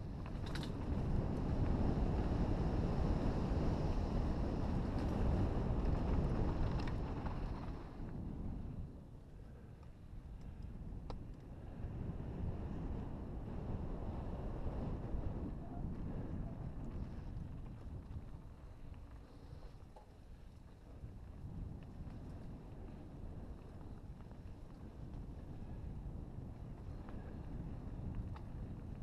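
Wind buffets a microphone, loud at first and then easing.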